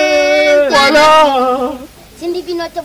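A young child cries out loudly in a high, wailing voice.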